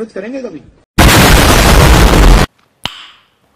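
A huge explosion roars.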